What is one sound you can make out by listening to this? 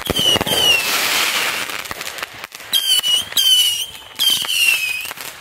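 Fireworks pop and crackle.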